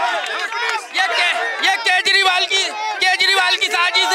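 A crowd of men chants in rhythm.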